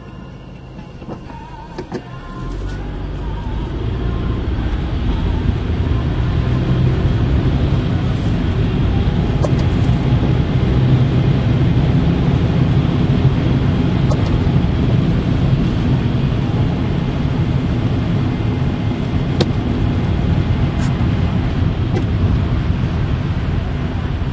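A car engine hums and rises as the car pulls away and picks up speed.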